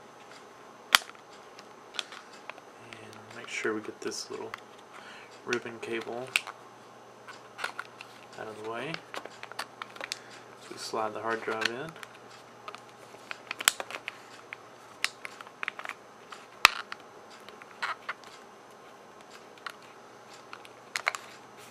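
Small metal and plastic parts click and knock as a hard drive is fitted into place.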